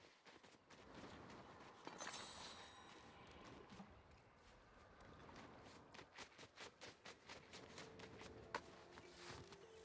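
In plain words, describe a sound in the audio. Footsteps crunch quickly over snow.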